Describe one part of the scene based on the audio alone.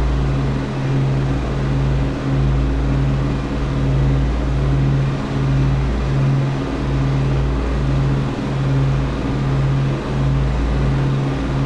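An aircraft engine drones loudly with a slow, pulsing beat.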